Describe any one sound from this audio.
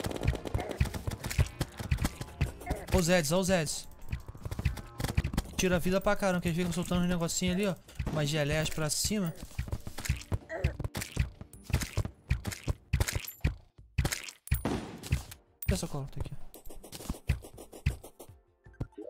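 Video game effects click and pop rapidly.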